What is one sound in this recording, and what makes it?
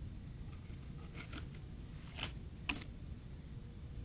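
A small animal rustles through dry leaves.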